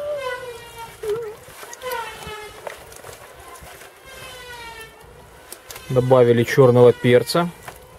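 Wet fish pieces squelch as hands rub and turn them in a plastic bowl.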